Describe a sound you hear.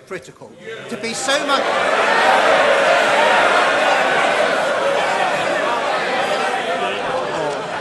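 A large crowd of men murmurs and shouts loudly in an echoing chamber.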